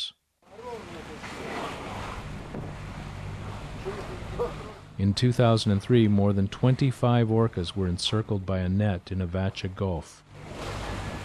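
Orcas splash and blow as they surface nearby.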